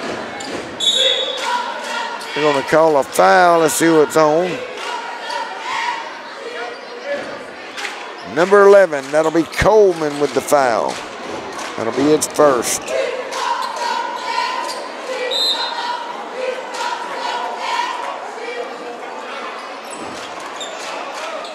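A basketball bounces on the floor.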